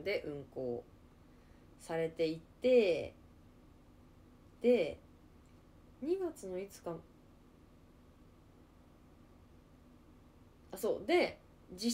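A young woman speaks close by in short, expressive bursts with pauses between them.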